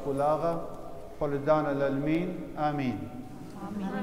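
A man chants in a deep, sung voice in a large echoing hall.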